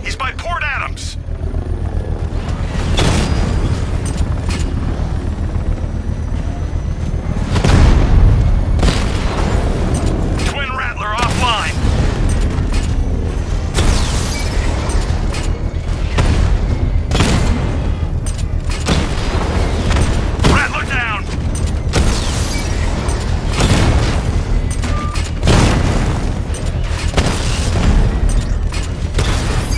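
A heavy vehicle engine rumbles and roars steadily.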